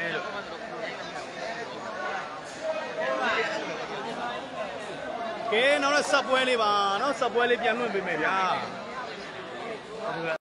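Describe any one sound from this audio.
A crowd of young men chatters and shouts nearby in a large echoing hall.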